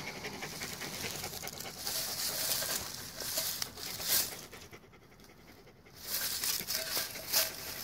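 Dry grass rustles as a hand brushes it aside.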